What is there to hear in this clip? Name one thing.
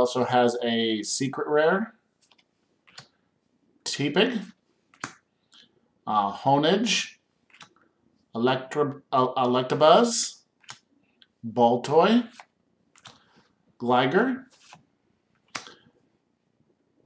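Trading cards shuffle and slide between hands.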